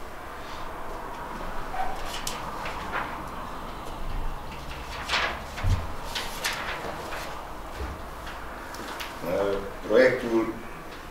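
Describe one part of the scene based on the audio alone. Pens scratch on paper.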